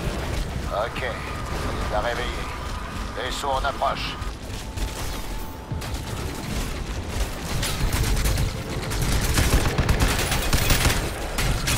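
A young man speaks close to a headset microphone.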